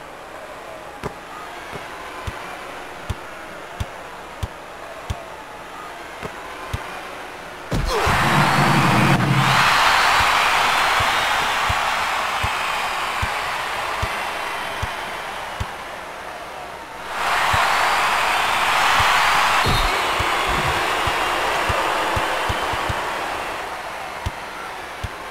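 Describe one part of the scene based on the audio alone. A basketball bounces steadily on a hard court.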